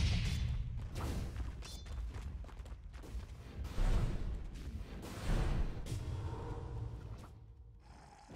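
Magic blasts and weapon hits crash in a loud fight.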